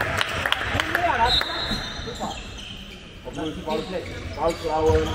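Teenage boys shout to each other in an echoing hall.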